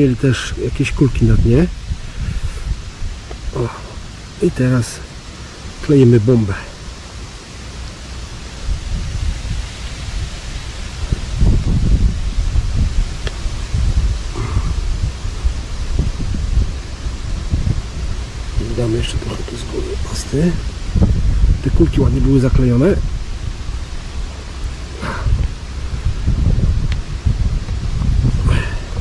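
Clumps of soil crumble and rustle between hands.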